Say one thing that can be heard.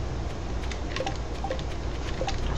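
Soft game menu blips sound several times.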